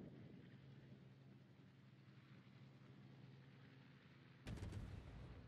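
A ship's engine hums low and steady.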